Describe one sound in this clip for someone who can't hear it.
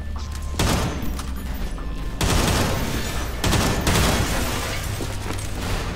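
A rifle fires short bursts of shots close by.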